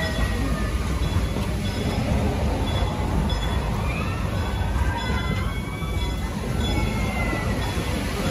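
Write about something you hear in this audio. Train carriages rumble and clatter along a track.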